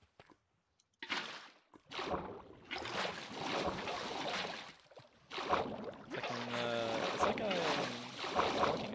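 Water rushes and gurgles close by.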